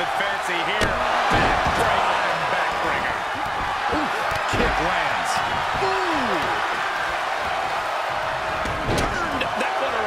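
Bodies thud onto the ring mat.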